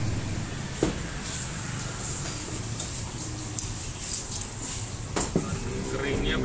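Metal parts clink and knock as a man works on an engine.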